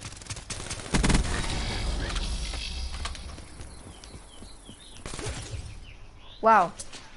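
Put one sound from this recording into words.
A gun fires rapidly in short bursts.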